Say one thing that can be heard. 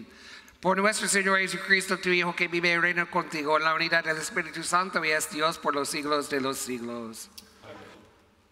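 An elderly man sings a prayer through a microphone in a large echoing hall.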